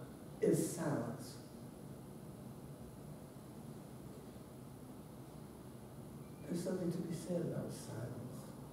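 An older woman speaks calmly into a microphone, with pauses.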